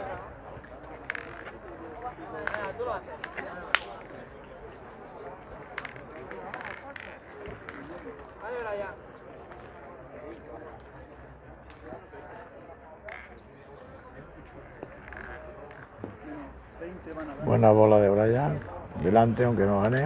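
Several men talk in the background outdoors.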